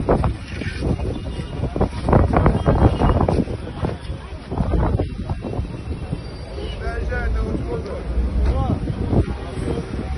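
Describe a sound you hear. A crowd of men talk excitedly outdoors.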